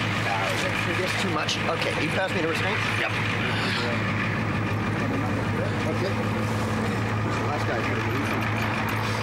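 Several men talk urgently close by.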